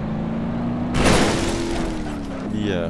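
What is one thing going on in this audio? A car crashes with a loud bang.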